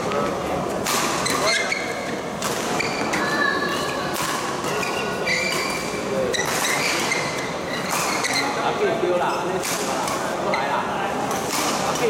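Sports shoes squeak sharply on the court floor.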